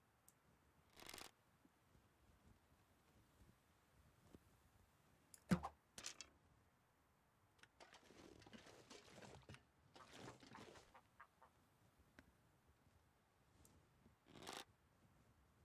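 A wooden bow creaks as it is drawn back.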